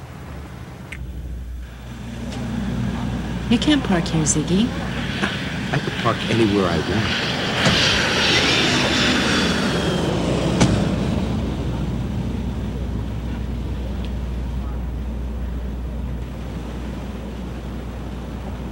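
Car engines rumble at low idle as cars pull up.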